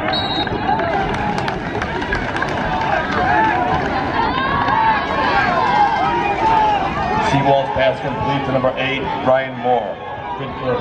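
A crowd of young men talks and shouts loudly nearby, outdoors.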